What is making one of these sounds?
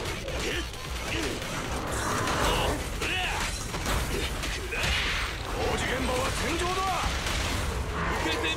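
Metal clashes and blasts crackle in a fight.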